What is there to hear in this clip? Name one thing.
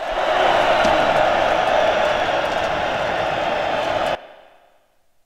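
A large crowd of men cheers and roars loudly, then abruptly stops.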